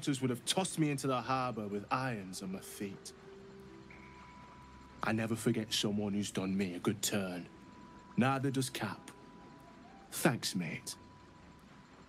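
A man with a deep, gruff voice speaks with feeling, close by.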